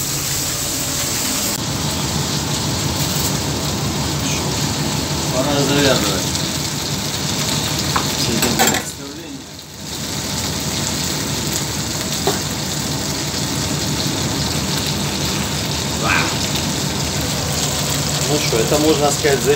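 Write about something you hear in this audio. Meat sizzles steadily in a frying pan.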